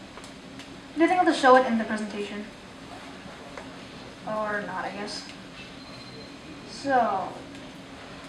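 A boy speaks into a microphone over a loudspeaker in a large room, in short bursts.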